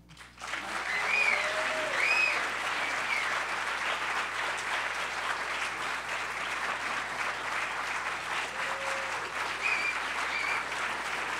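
People in an audience cheer and whoop.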